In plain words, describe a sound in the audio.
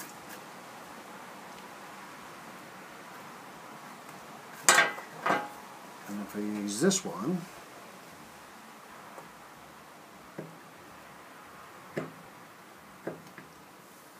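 A carving chisel taps and scrapes into wood in short bursts.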